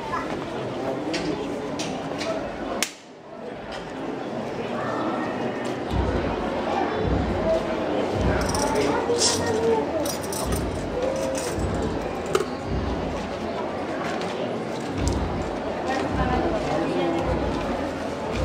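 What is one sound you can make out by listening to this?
A crowd murmurs and chatters nearby outdoors.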